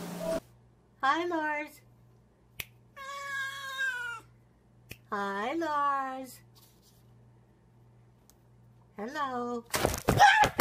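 A cat meows loudly, several times, close by.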